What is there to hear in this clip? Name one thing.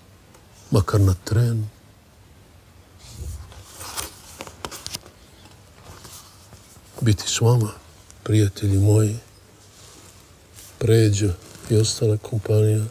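An elderly man speaks slowly and deliberately into a close microphone.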